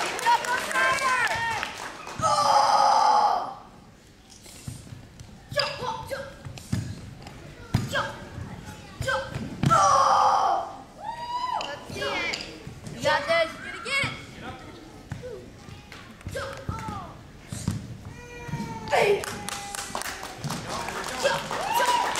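Bare feet thump on a wooden floor.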